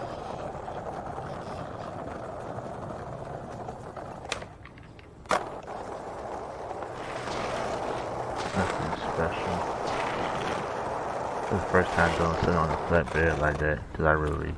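Skateboard wheels roll over hard ground.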